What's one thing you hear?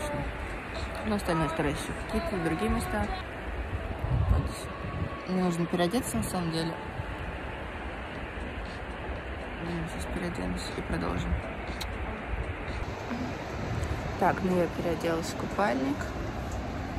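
A young woman talks calmly and close to the microphone.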